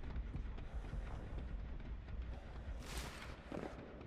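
A man vaults through a window with a thud.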